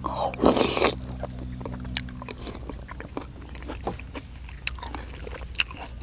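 A man chews and smacks his lips close by.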